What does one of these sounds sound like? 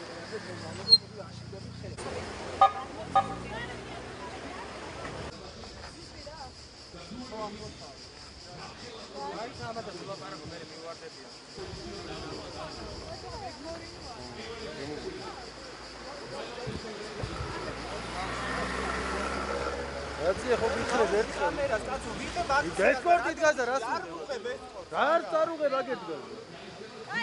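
A crowd of men and women talks outdoors.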